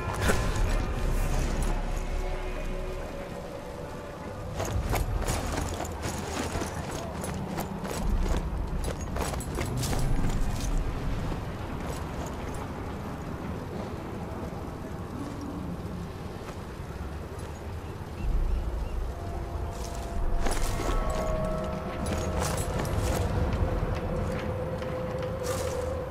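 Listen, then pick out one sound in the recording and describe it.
Soft footsteps scuff slowly over stone.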